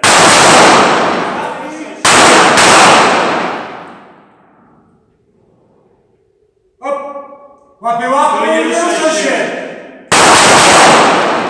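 Pistol shots bang loudly and echo through a large hall.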